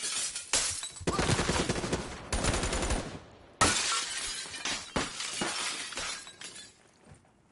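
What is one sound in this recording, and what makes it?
Gunfire and explosions from a video game crackle loudly.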